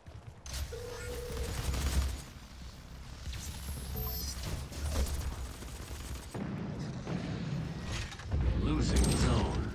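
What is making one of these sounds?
Heavy guns fire in loud, booming bursts.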